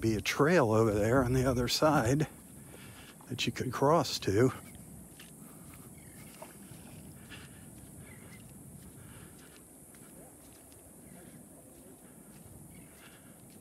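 A light wind blows outdoors.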